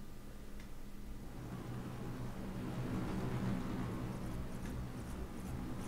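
A helicopter engine hums steadily.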